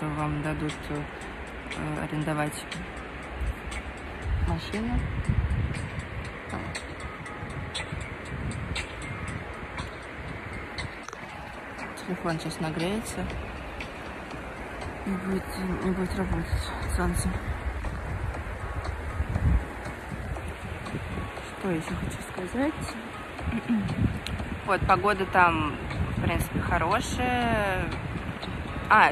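A young woman talks softly and closely into a microphone.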